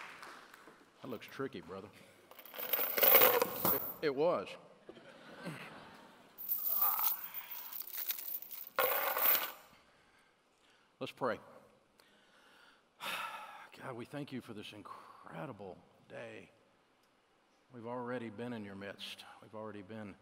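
An older man speaks slowly and with feeling through a microphone in a large room.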